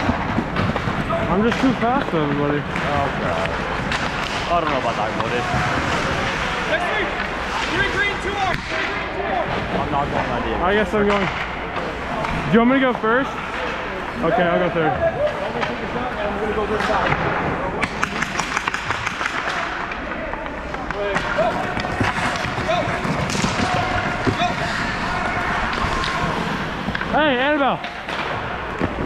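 Young players talk and shout across a large echoing ice rink.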